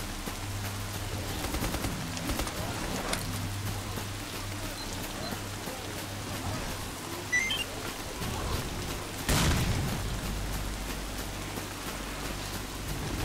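Footsteps rustle steadily through tall grass.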